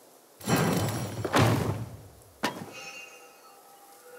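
A heavy wooden lid creaks open.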